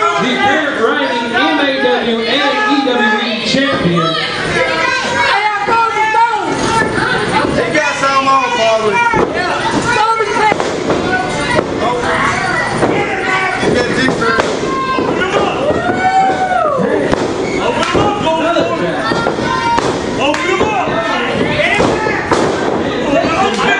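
A crowd of spectators shouts and cheers loudly close by.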